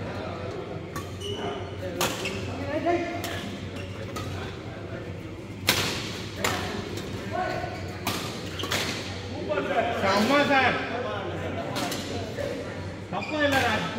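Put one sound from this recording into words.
Rackets sharply strike a shuttlecock in a large echoing hall.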